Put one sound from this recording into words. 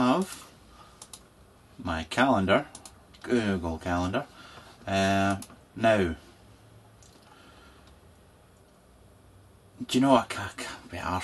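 A man talks calmly and close by, with pauses.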